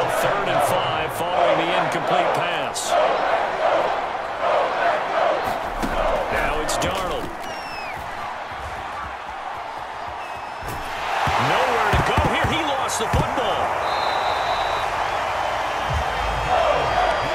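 A large stadium crowd roars and cheers, swelling loudly near the end.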